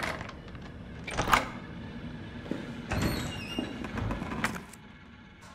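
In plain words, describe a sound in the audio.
A metal door latch clicks and slides open.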